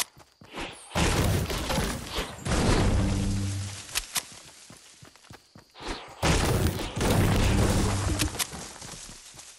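A pickaxe chops into a tree trunk with sharp thuds.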